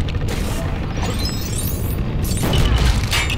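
Coins jingle as they scatter.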